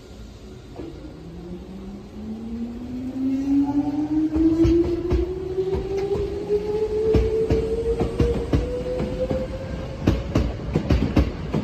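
An electric train pulls away with a rising motor whine.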